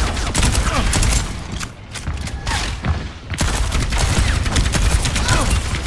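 Rapid gunfire rattles and crackles in quick bursts.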